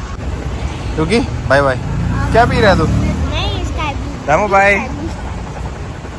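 A young girl speaks and laughs cheerfully close by.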